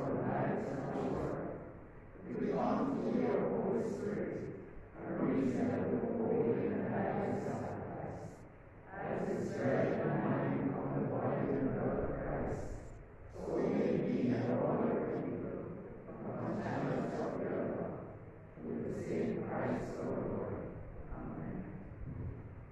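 A man chants a prayer in phrases, heard from a distance in an echoing hall.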